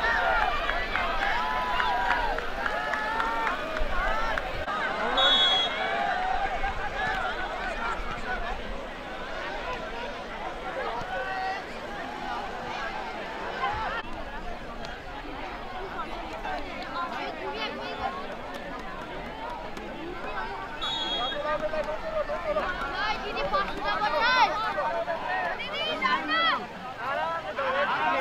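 A crowd of people chatter outdoors.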